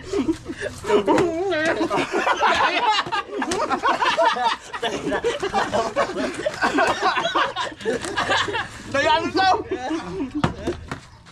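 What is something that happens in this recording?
Several men talk and laugh loudly close by, outdoors.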